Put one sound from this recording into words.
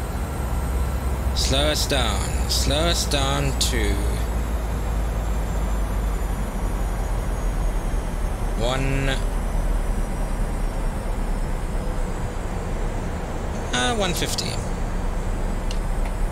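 Jet engines drone steadily with a low rumble of air rushing past.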